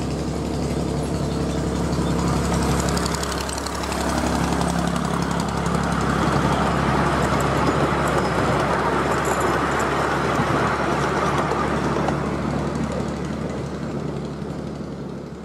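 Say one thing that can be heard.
Train wheels rattle and clack on a narrow track.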